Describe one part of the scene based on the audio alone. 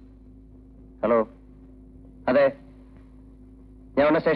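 A man speaks into a phone in short, loud bursts.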